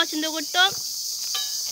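A young boy speaks close by.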